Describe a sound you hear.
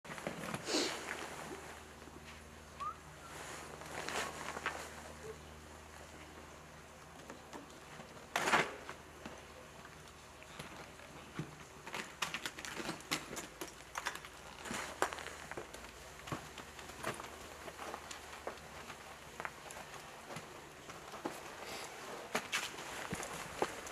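Boots scuff and thud against a stone wall.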